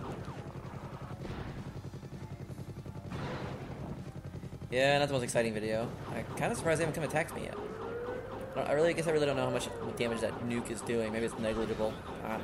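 Game explosions boom.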